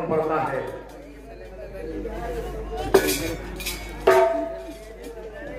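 An elderly man speaks into a microphone, heard over loudspeakers.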